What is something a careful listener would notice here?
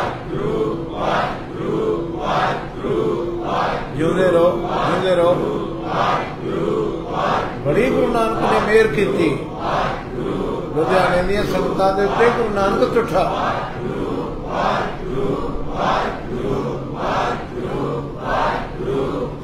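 An elderly man sings and chants steadily into a microphone, heard through loudspeakers.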